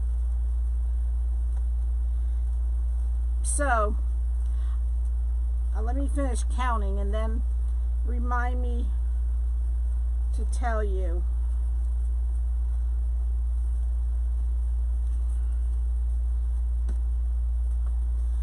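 Plastic mesh ribbon rustles softly as hands handle it.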